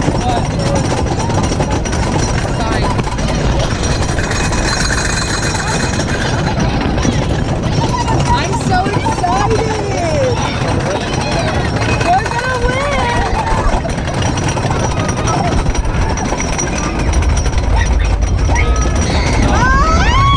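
A roller coaster rattles and rumbles on its track.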